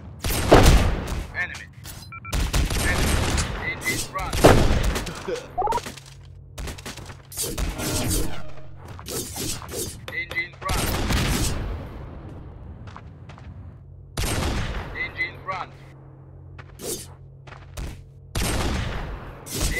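Gunshots fire in loud, sharp bursts again and again.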